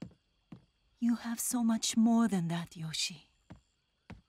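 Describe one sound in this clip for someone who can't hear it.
A man speaks calmly and firmly.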